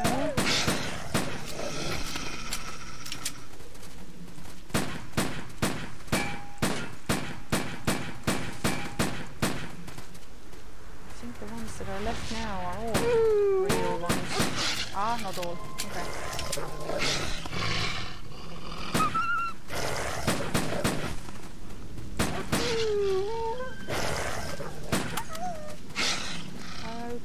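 A pistol fires shot after shot in quick bursts.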